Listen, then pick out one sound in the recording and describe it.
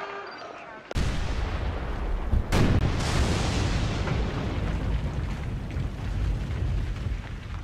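Meteors slam into the ground with deep, rumbling booms.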